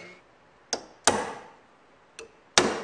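A hammer strikes a chisel with sharp metallic taps.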